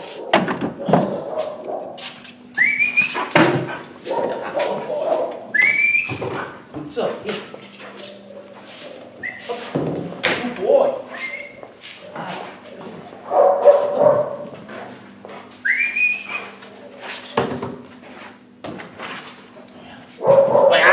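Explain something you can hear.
A dog's claws scratch and tap on a hard floor.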